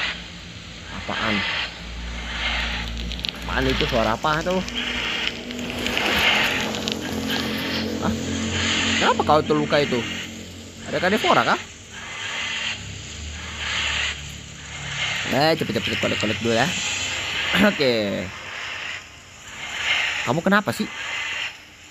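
A large creature gives shrill, warbling calls again and again.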